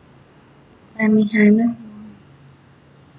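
A young woman speaks briefly and close to a microphone.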